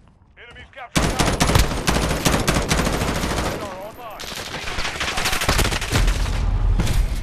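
Rapid gunfire cracks and echoes.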